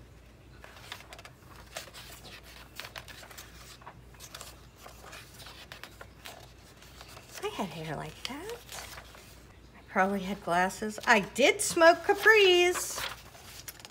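Magazine pages rustle and flip as they are turned by hand.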